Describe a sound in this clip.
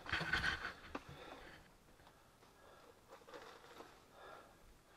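Loose stones crunch and scrape underfoot.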